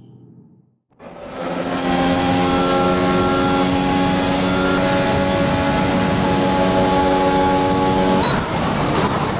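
A racing car engine holds a steady, high-revving roar.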